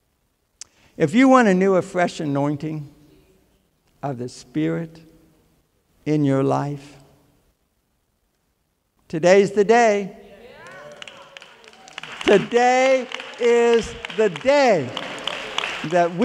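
An elderly man speaks with animation through a microphone in a large hall.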